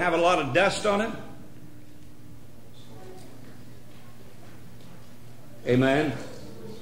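An elderly man speaks forcefully into a microphone, with pauses between phrases.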